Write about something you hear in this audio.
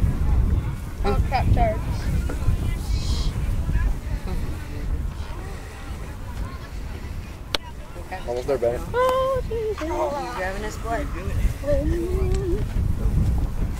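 Several boys talk nearby.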